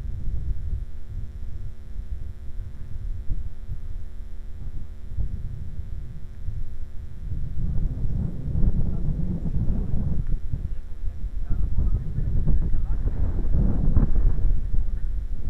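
Wind blows and rumbles outdoors, growing stronger partway through.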